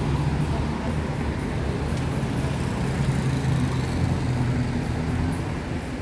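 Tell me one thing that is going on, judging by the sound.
Traffic hums steadily on a nearby road.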